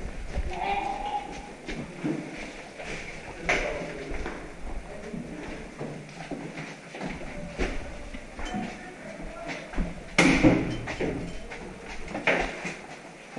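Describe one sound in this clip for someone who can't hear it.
Footsteps thud and scuff on a hard floor nearby.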